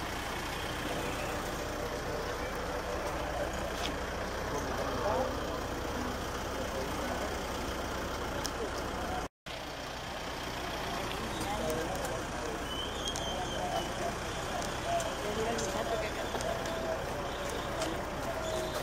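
A large crowd of men and women murmurs outdoors.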